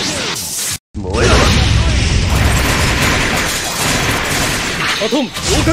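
Blows and thrown blades strike in rapid hits.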